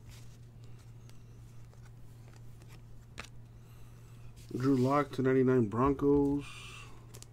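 Trading cards softly rustle and slide against each other in someone's hands.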